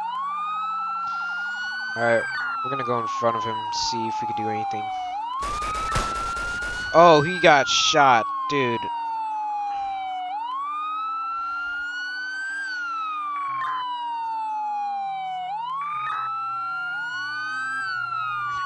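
A police siren wails, rising and falling throughout.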